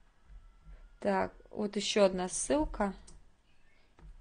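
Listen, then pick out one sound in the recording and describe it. A woman speaks calmly through a computer microphone.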